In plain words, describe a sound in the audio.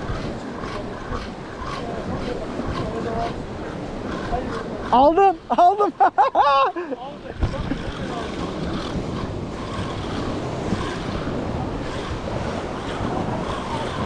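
Wind gusts outdoors, buffeting the microphone.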